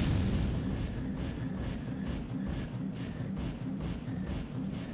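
Heavy metal footsteps thud in a steady rhythm.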